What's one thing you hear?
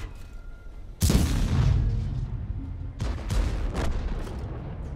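Tank guns fire with loud booming blasts.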